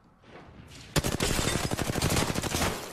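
A gun fires rapid bursts of shots close by.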